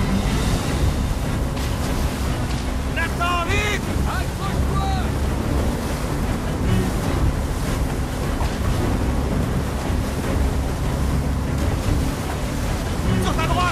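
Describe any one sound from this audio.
Stormy waves crash and roar around a boat.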